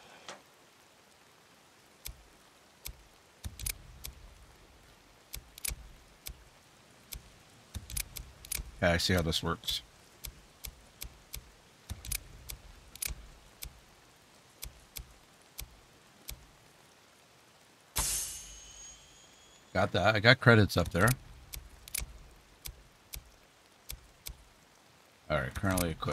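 Soft menu clicks tick again and again.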